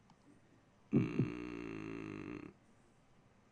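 A short electronic chime sounds as a menu choice is made.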